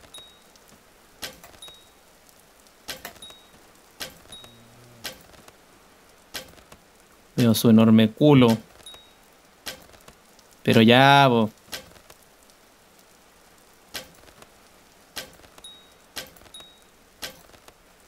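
Wooden ladders are placed with soft, short knocks.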